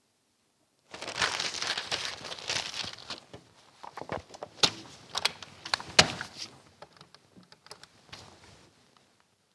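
A newspaper rustles as its pages are handled.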